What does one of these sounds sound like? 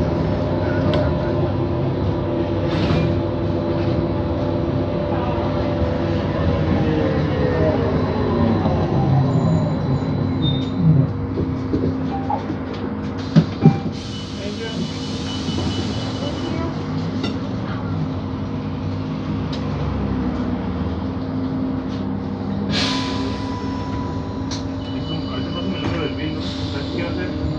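A bus engine hums and whines steadily from inside the bus.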